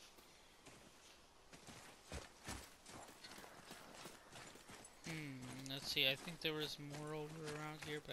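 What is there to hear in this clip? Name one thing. Heavy footsteps crunch on dirt and leaves.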